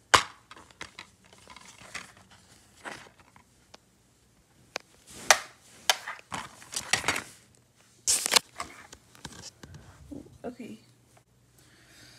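Plastic knocks and rattles as a disc case is handled.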